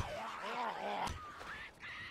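Punches thud against a body.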